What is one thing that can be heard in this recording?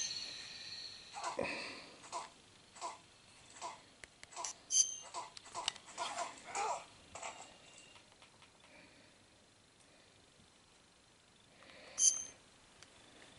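A handheld game console beeps as its menu is clicked through.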